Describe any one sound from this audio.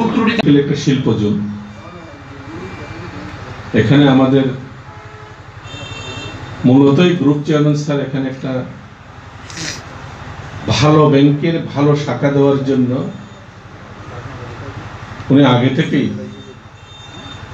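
A middle-aged man gives a speech into a microphone, in bursts with pauses, his voice ringing in a roomy space.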